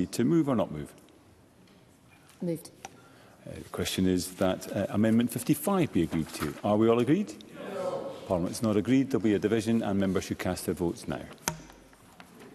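A middle-aged man speaks calmly and formally into a microphone.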